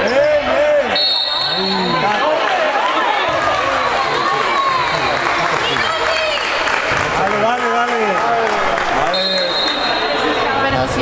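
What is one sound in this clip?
A referee's whistle blows in short shrill blasts.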